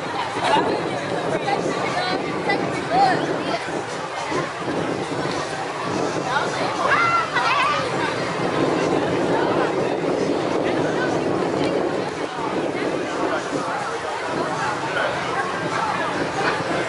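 A crowd of young men and women chatters and calls out outdoors.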